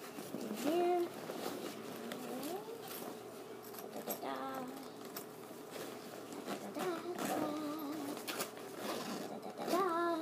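A young girl speaks in a high voice close by.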